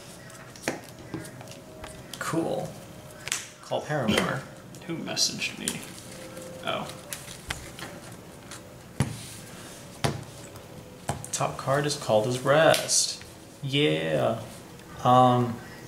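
Playing cards tap and slide softly on a table.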